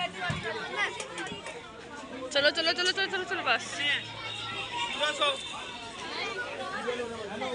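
A crowd of children and adults chatter and shout close by.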